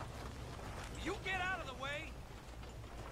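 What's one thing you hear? A man on horseback speaks sharply.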